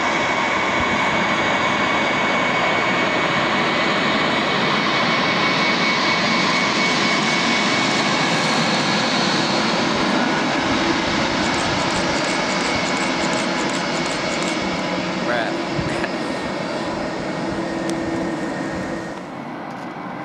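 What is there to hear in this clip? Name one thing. A twin-engine jet airliner roars on approach and comes in to land.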